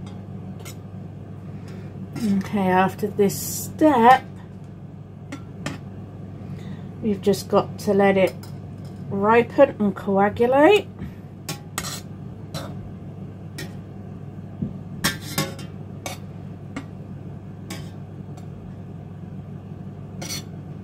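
A metal skimmer clinks against the side of a steel pot.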